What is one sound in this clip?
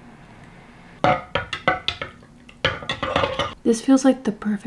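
A spoon clinks against a ceramic mug while stirring.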